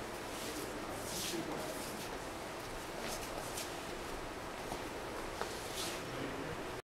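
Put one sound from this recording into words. Shoes shuffle and scuff on a hard floor.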